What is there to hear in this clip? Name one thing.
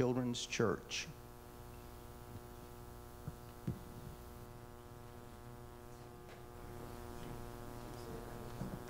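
A keyboard holds a soft, steady chord.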